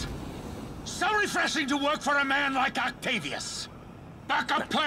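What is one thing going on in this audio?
A man speaks forcefully.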